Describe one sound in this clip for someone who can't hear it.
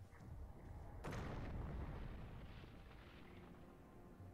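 An explosion booms and rumbles, then fades.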